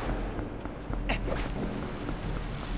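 A body rolls and thuds on a stone floor.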